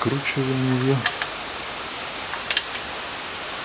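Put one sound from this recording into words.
A wrench clicks and scrapes against metal.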